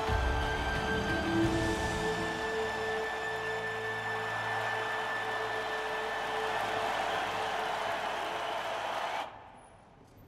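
A large crowd cheers loudly in a big arena.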